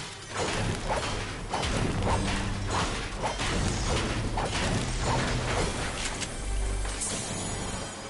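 A pickaxe strikes a metal roof repeatedly with sharp clanks.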